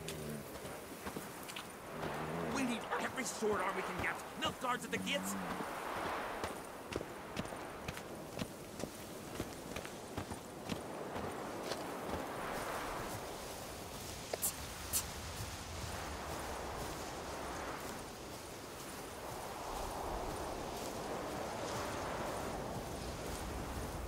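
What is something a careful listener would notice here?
Footsteps crunch on a dirt path and stone steps.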